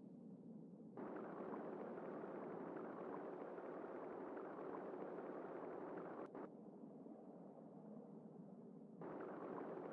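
A small submarine's engine whirs and bubbles underwater.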